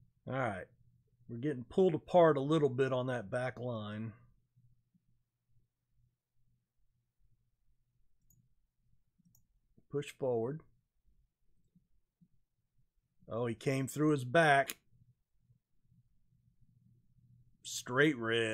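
A middle-aged man talks calmly and close up into a microphone, in short bursts with pauses.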